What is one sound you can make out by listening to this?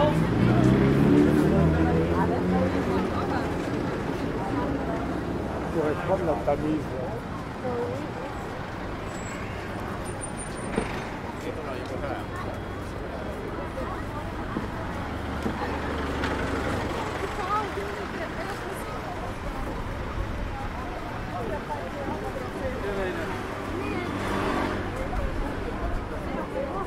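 A crowd of people chatter and walk along outdoors.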